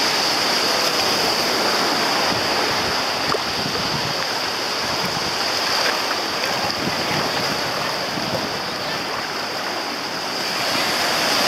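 Legs splash through shallow water.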